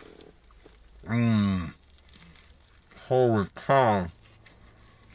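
A middle-aged man hums with pleasure while chewing.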